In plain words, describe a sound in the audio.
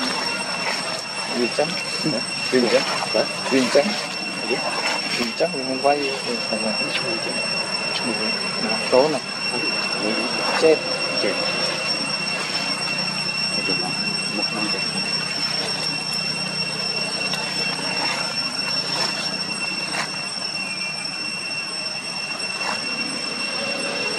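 A monkey walks over dry leaves, which rustle and crunch underfoot.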